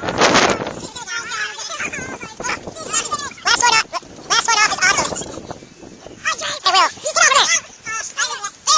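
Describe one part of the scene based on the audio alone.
Children shout and laugh excitedly close by.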